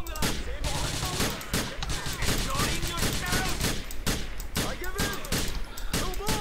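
A pistol fires repeated gunshots.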